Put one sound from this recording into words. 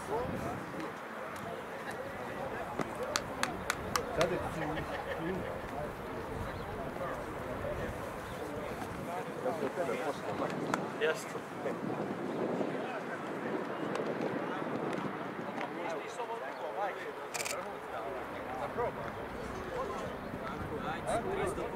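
Men talk and call out outdoors across an open field, some way off.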